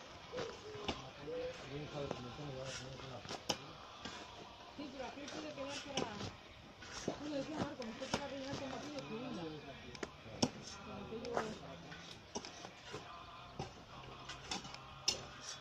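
A shovel scrapes and digs into dry dirt.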